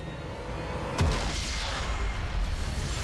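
A loud game explosion booms.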